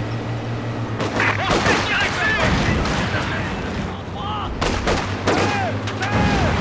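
Explosions and gunfire crack and boom nearby.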